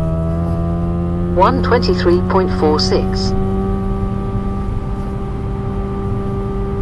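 A car engine roars at high speed with a steady drone.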